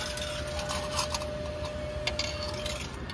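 Coins clink and clatter into a ticket machine.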